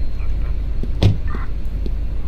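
A car door slams shut.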